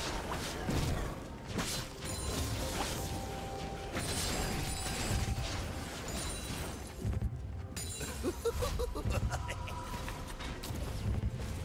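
Video game spell sounds zap and chime.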